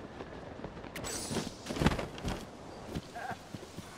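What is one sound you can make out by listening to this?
Footsteps thump onto grass after a landing.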